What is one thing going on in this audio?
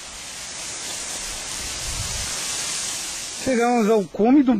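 Leaves and grass rustle against the microphone.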